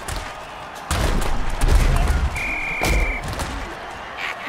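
A heavy impact crashes with a deep boom.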